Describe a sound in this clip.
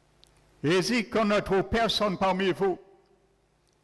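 A man speaks with animation through a microphone in an echoing hall.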